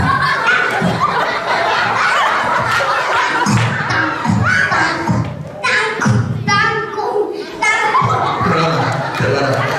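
Children answer briefly into a microphone.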